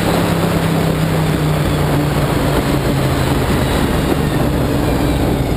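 A race car engine roars loudly and steadily close by.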